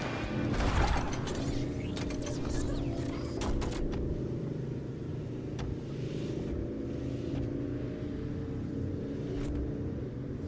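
A car engine hums steadily while driving on a road.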